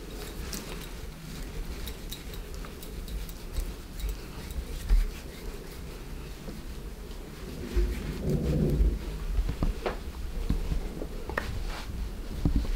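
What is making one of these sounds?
Hands rub and knead skin with soft, quick friction sounds.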